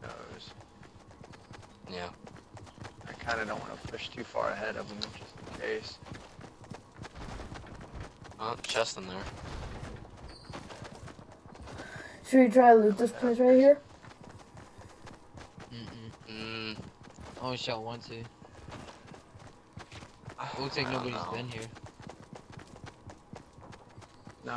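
Footsteps run quickly across grass.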